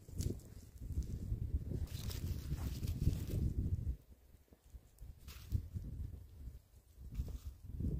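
Shoes shuffle on loose soil.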